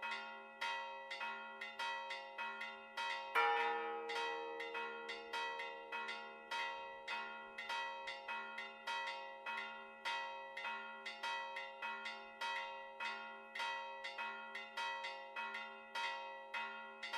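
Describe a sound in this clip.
Church bells ring out in a steady, repeating peal.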